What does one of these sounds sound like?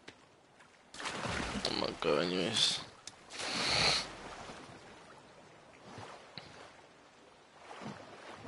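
Water splashes as a swimmer moves through it.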